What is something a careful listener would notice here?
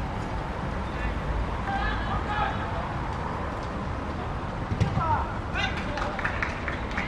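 Young boys shout to each other outdoors, at a distance.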